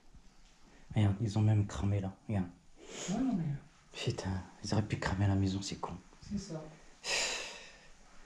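A man speaks in a low voice close by.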